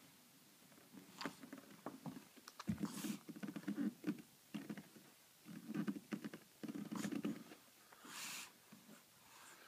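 A baby sucks noisily on a pacifier close by.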